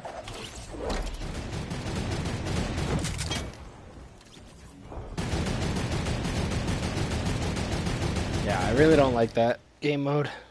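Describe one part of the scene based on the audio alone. Loud video game effects clatter and crash.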